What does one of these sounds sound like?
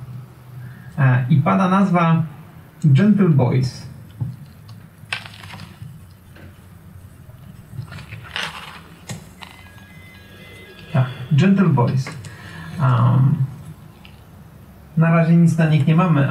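A man speaks calmly and close into a microphone, in short bursts.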